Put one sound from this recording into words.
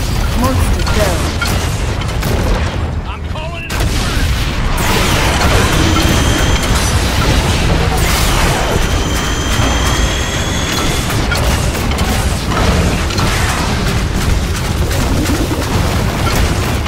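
Fire roars and crackles around a hulking monster.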